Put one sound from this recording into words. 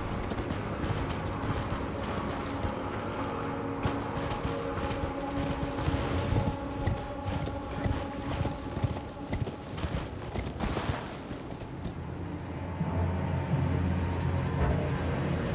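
A horse's hooves gallop over the ground.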